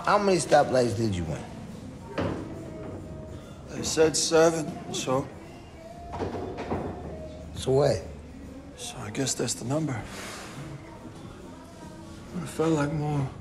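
Another man talks calmly nearby.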